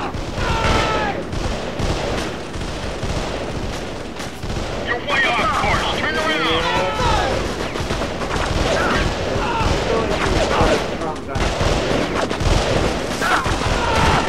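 Rapid gunfire rattles throughout.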